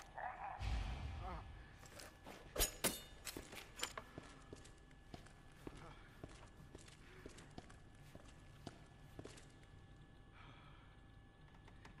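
Footsteps sound on a hard floor.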